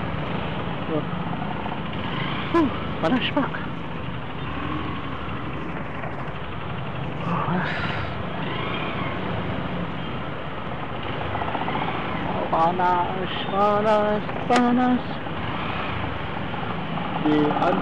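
A motorcycle engine idles with a low, steady rumble close by.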